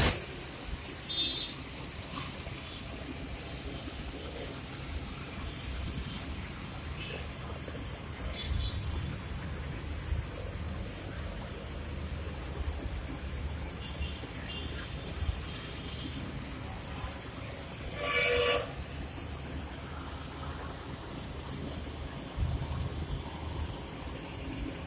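Air bubbles gurgle steadily in a fish tank.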